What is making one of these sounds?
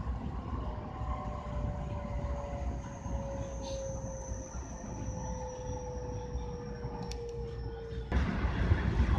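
A train's electric motor whines, slowly falling in pitch.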